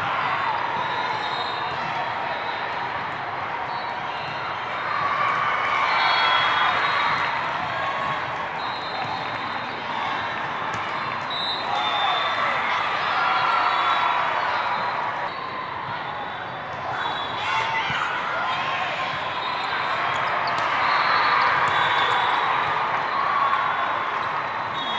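A volleyball thumps off a player's arms.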